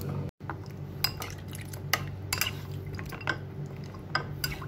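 A spoon clinks and scrapes against a bowl.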